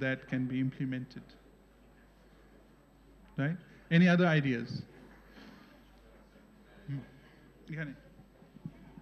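A man speaks calmly into a microphone in a room with some echo.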